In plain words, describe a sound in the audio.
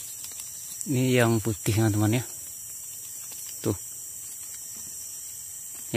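A leaf rustles softly as a hand bends it.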